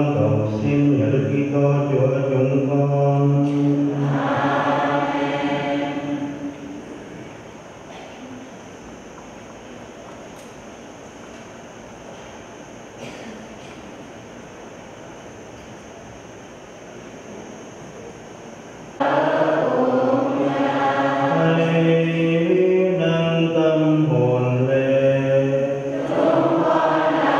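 An elderly man chants in a steady sung voice through a microphone.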